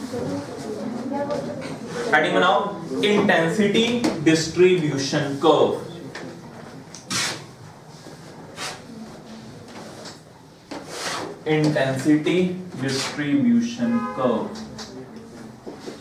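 A young man speaks calmly, lecturing.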